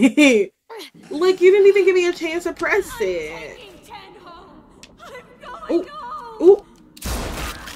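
A young girl speaks urgently.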